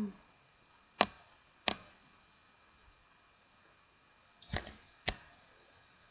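Wooden blocks break with short knocks.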